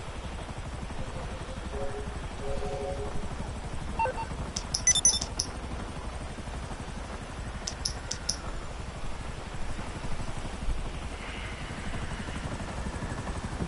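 A car engine idles with a low rumble.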